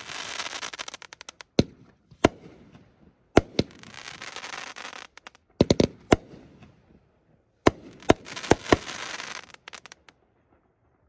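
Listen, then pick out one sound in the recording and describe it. Fireworks crackle and fizz loudly overhead.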